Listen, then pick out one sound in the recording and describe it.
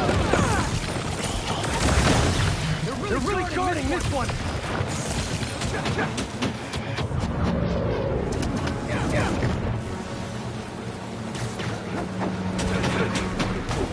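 Punches and kicks thud in a fast game fight.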